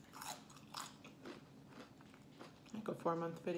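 A young woman crunches tortilla chips close up.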